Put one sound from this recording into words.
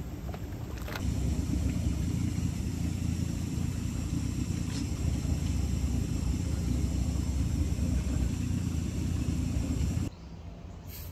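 Warm water trickles and flows over stones.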